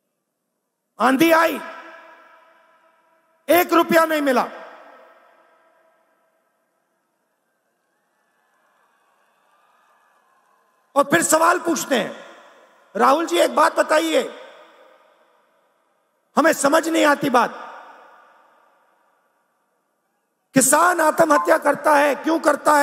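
A man speaks forcefully into a microphone, in short bursts that echo through loudspeakers across a large open space.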